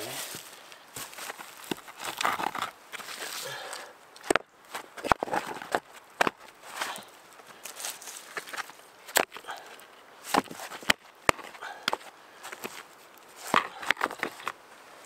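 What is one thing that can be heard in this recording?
Rocks knock and scrape against each other as they are placed.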